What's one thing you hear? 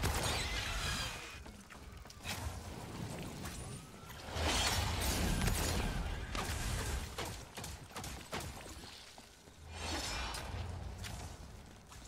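Guns fire in quick bursts with loud blasts.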